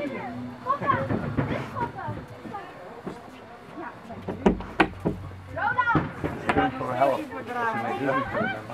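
A young woman talks with excitement close by.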